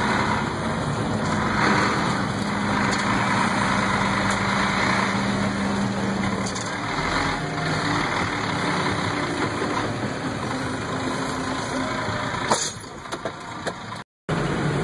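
Tyres crunch slowly over packed snow.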